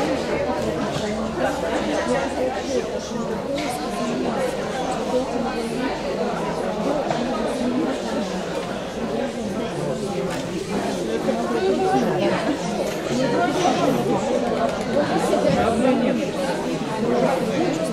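Men and women chat and murmur in the background of a large echoing hall.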